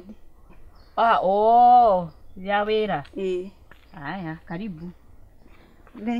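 A middle-aged woman speaks loudly and with animation up close.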